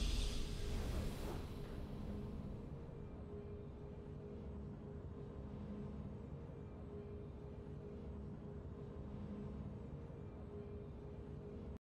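A triumphant burst of game music rings out and fades into a quiet, sustained hum.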